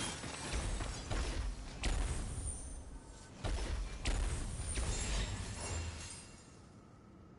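Magical energy crackles and booms in bursts.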